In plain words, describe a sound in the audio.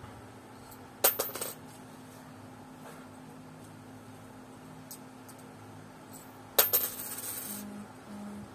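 Coins clink as they drop into a hollow plastic piggy bank.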